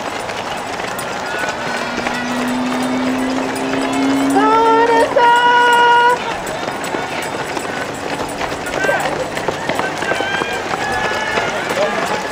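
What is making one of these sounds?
Many runners' footsteps patter on pavement.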